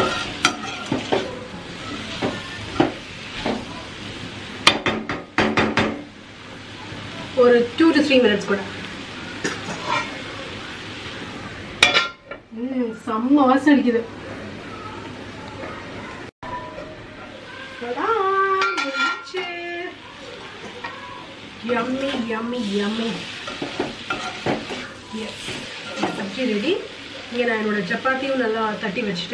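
A metal spatula scrapes and clanks against a wok.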